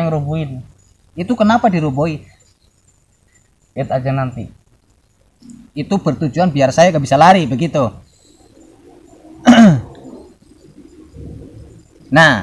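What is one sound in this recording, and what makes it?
A young man talks calmly, close by.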